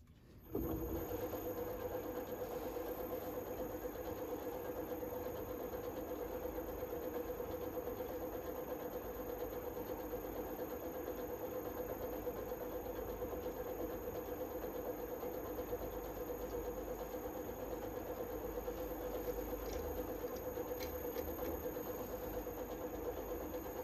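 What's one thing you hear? A chisel scrapes against spinning wood.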